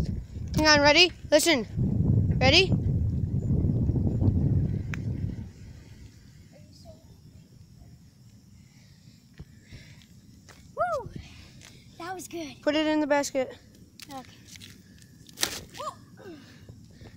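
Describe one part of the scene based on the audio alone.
A child talks excitedly nearby.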